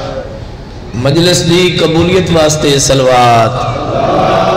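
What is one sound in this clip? A man chants loudly in a sung voice through a microphone.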